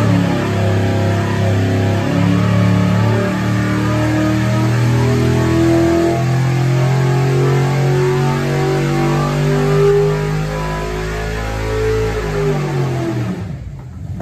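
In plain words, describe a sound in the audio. An engine roars loudly under load, its pitch climbing and then dropping away.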